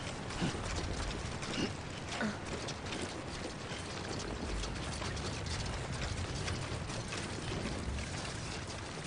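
Footsteps crunch on loose rocks.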